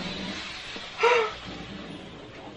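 A young woman squeals in surprise.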